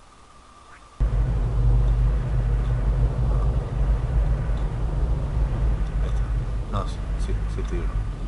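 A car engine hums steadily at a low pitch.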